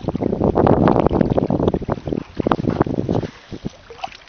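Water splashes as a man wades in shallow water.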